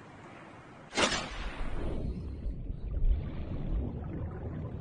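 Water rumbles low and muffled underwater.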